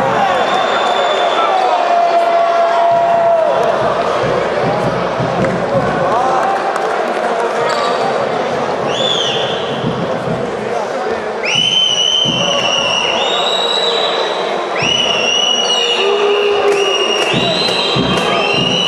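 A crowd murmurs and chatters steadily in a large echoing hall.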